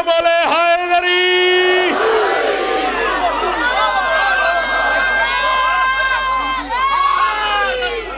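A crowd of men chants together loudly.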